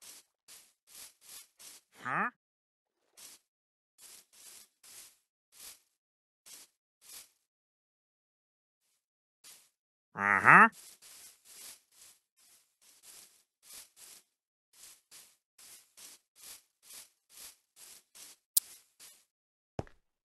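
Footsteps crunch steadily on grass.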